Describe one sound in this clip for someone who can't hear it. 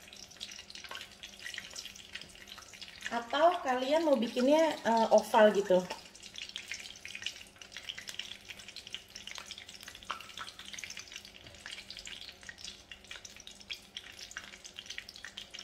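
Hot oil sizzles softly and crackles as pieces of dough fry.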